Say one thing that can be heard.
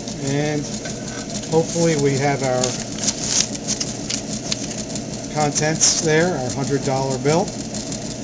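Paper rustles as an envelope is handled.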